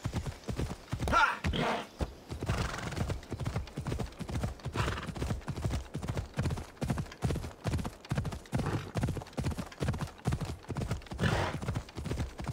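A horse gallops with a steady rhythm of thudding hoofbeats.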